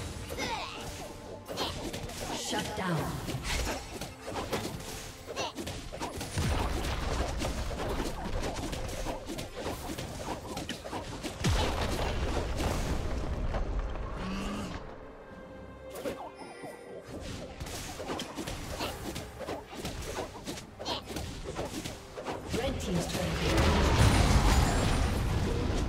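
Game spell effects crash and whoosh during a fight.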